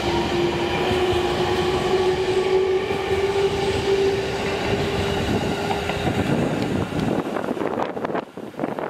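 A passing train rumbles loudly along the tracks.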